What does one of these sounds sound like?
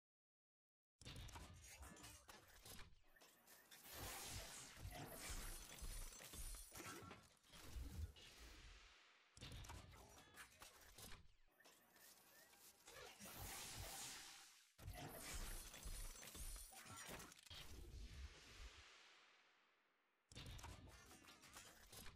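A game's loot capsule opens with whooshing, crackling electric effects and loud bursts.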